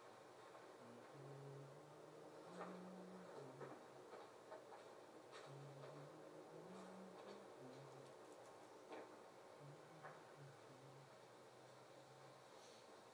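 Soft music plays from a television's speakers.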